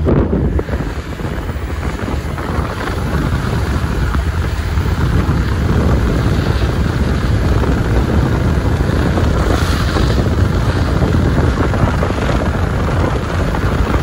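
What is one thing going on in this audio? Tyres rumble steadily over firm wet sand.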